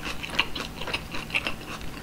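A crunchy green pepper snaps with a loud bite.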